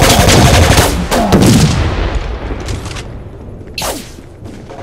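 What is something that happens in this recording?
A loud explosion booms and fades.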